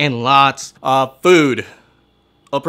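A man sings out loudly, close by.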